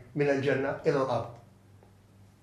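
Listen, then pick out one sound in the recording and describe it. An elderly man speaks calmly and close to a microphone.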